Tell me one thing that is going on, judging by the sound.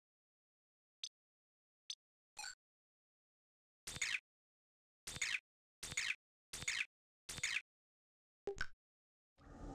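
Short electronic menu blips sound one after another.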